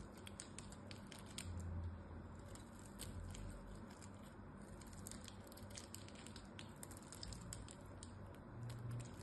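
Small crumbs crackle and patter as they break off.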